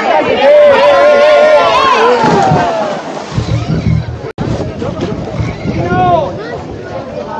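A crowd of young people cheers and shouts outdoors.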